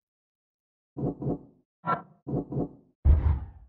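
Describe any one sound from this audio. Soft menu chimes sound as options are selected.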